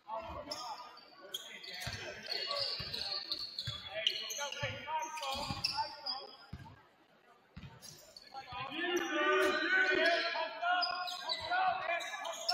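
Sneakers squeak on a hardwood floor in an echoing gym.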